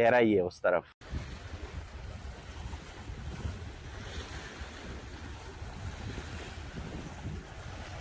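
Waves splash and lap against rocks at the shore.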